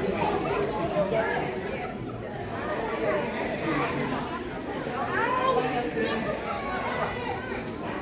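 A woman sings into a microphone over loudspeakers.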